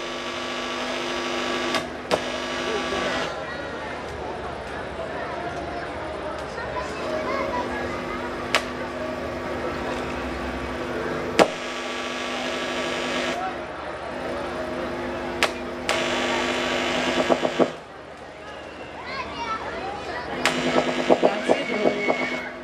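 A woman sings into a microphone over a loudspeaker.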